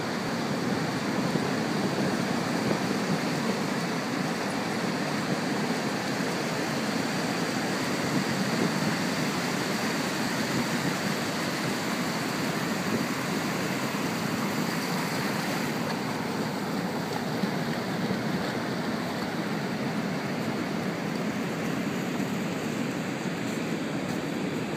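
Ocean surf breaks and washes up on a beach.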